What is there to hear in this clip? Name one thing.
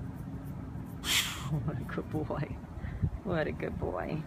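A hand rubs softly over a dog's fur.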